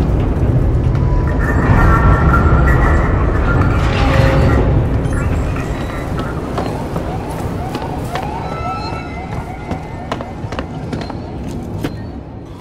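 A low mechanical rumble drones through metal corridors.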